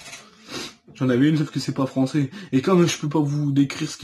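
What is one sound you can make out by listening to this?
A young man speaks loudly and with animation close to the microphone.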